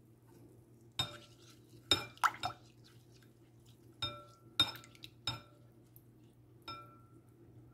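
A spoon clinks against a glass bowl while stirring.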